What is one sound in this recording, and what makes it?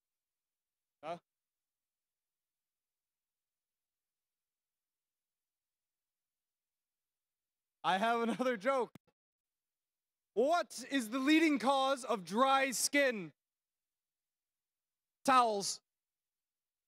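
A man speaks through a microphone in short bursts.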